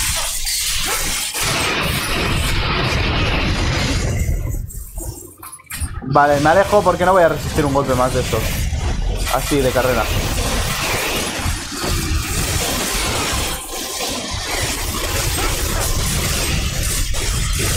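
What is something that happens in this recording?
Fiery blasts burst with a roar.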